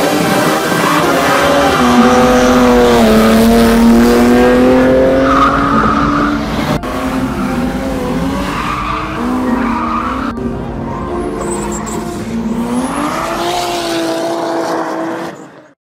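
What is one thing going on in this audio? Tyres squeal on the track.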